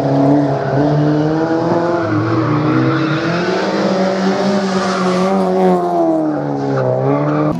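A racing car engine roars loudly, its pitch rising and falling as the car shifts gears and passes close by.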